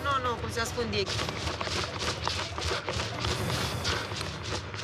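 Running footsteps slap quickly on pavement.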